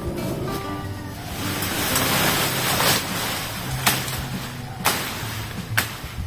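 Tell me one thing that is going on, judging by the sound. Leafy branches rustle and crackle as they are dragged.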